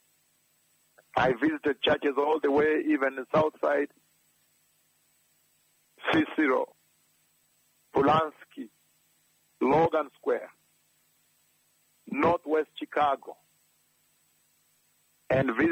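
A man preaches forcefully into a microphone, in bursts with pauses.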